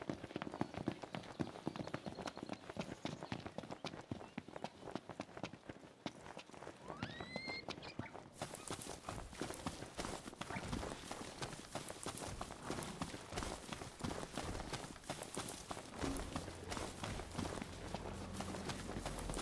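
Quick footsteps run through grass.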